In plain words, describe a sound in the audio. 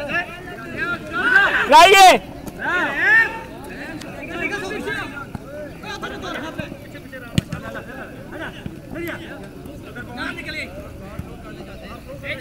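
Young men shout and call out to each other across an open field.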